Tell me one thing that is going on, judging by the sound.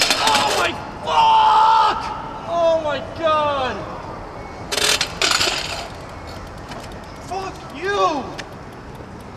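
A young man groans and cries out in pain nearby.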